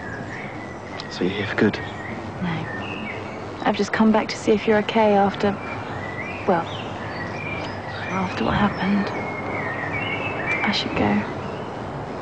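A young woman speaks gently, close by.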